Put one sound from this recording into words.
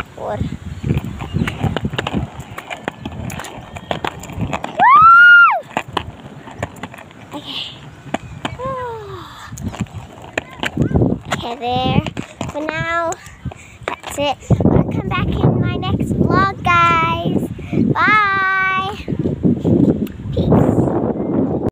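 A young girl talks playfully close by.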